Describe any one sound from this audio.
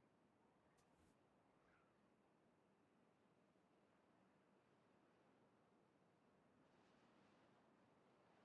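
A man talks calmly into a close microphone.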